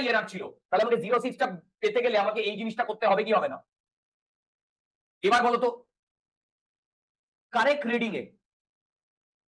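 A man explains calmly into a close microphone, pausing between phrases.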